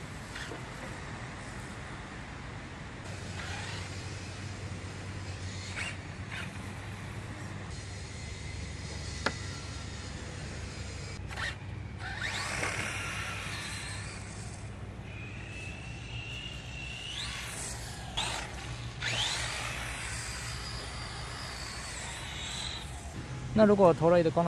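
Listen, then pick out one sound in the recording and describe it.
A small electric motor whines as a toy car speeds across wet ground.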